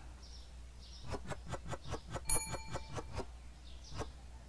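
Small items clack softly as they are set down on a shelf, one after another.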